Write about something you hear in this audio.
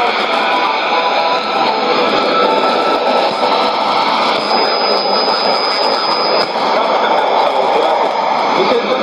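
A shortwave radio plays a broadcast through a small loudspeaker, thick with crackling static and hiss.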